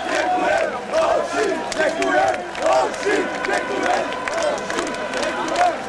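Hands clap sharply among the crowd.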